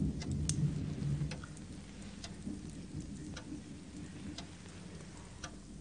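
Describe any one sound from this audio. A fire crackles softly in a fireplace.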